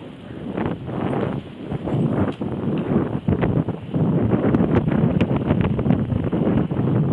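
Bicycle tyres roll over a rough path.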